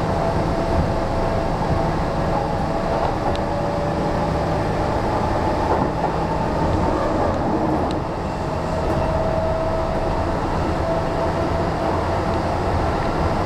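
Train wheels squeal faintly on the rails.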